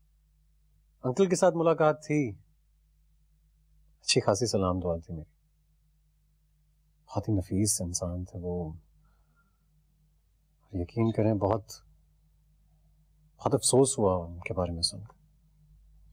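A man answers in a low, calm voice, close by.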